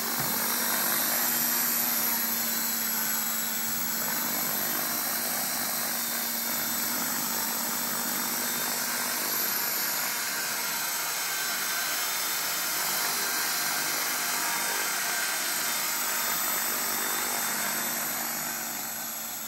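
A model helicopter's motor whines steadily close by, with its rotor whirring.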